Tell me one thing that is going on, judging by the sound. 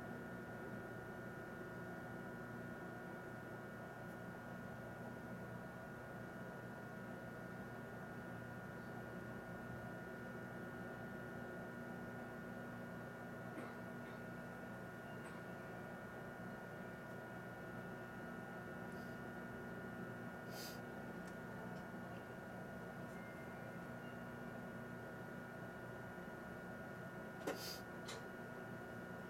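A train hums steadily while standing still.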